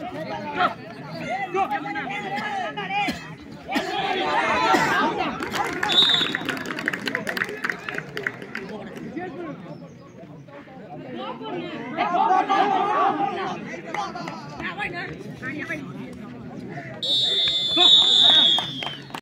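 Young players shout and call out across an open outdoor field.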